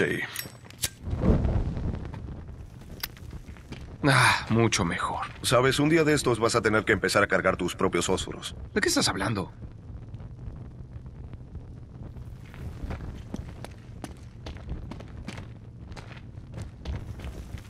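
A torch flame roars and crackles.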